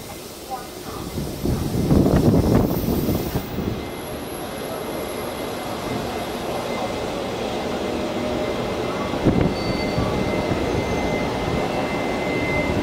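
Train wheels clatter and rumble steadily along the rails.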